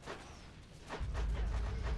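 A fiery blast booms in a game.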